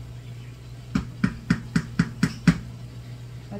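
A wooden spoon taps several times on the rim of a pan.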